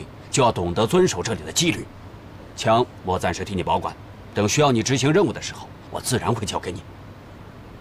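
A middle-aged man speaks calmly and warmly.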